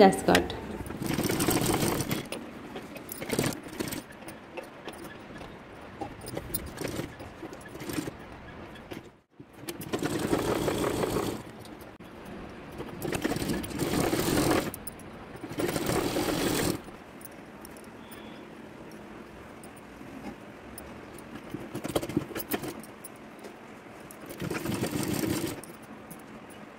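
A sewing machine whirs in short bursts of stitching.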